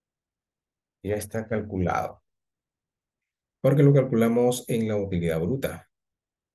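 An elderly man speaks calmly into a microphone over an online call.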